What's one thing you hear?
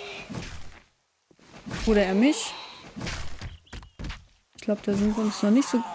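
A club strikes a body with heavy thuds.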